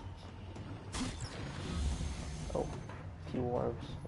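A treasure chest bursts open with a bright magical whoosh.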